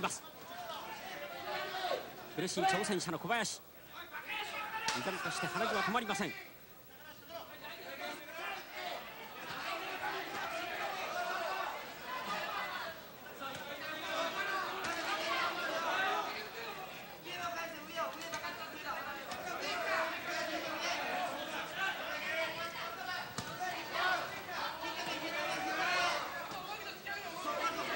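A large crowd cheers and shouts in a big hall.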